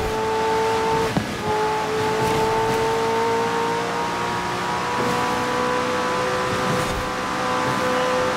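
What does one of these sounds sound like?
A sports car's engine roars at high revs, shifting gears as it speeds along.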